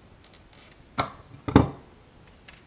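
Metal tweezers tap and click against a small circuit board.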